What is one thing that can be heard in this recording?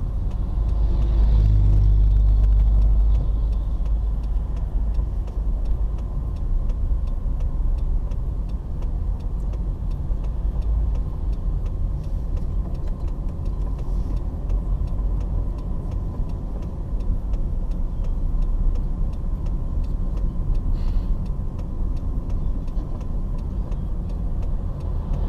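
A car drives along a road, with a low engine and tyre rumble heard from inside.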